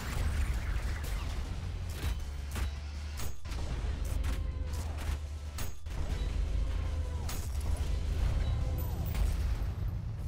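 Shotgun blasts boom in quick bursts.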